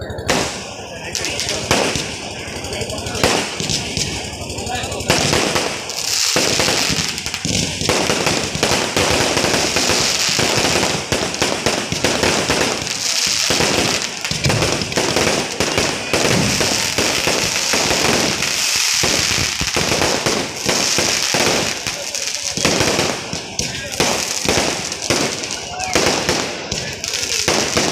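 Firework sparks fizz and hiss loudly.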